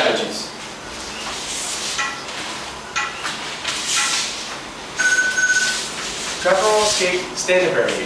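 Heavy cotton uniforms rustle and brush as two people move on a mat.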